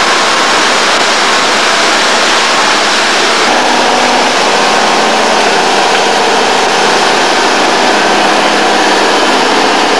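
A heavy diesel engine roars steadily close by.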